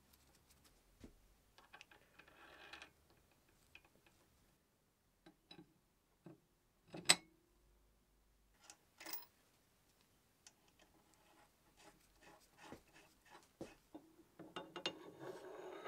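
Metal parts clank and knock as they are set onto a machine's cross slide.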